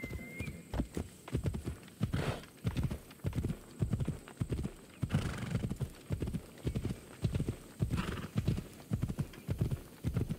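Horse hooves thud steadily on a dirt path at a trot.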